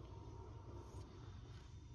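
A hand gently rubs a dog's fur.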